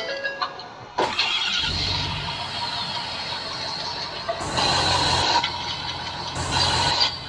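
A diesel truck engine rumbles at idle.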